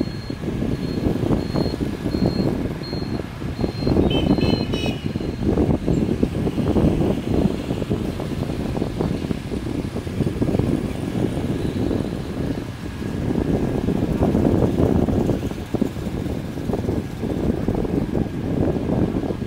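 Motorbike engines hum and buzz along a busy street.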